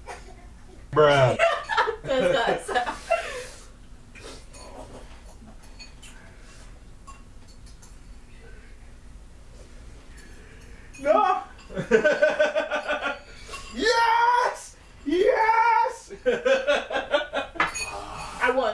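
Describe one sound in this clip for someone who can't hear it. Young men talk and laugh loudly close by.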